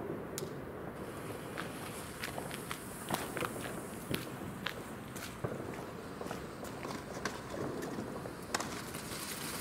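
A firework fuse fizzes and sputters.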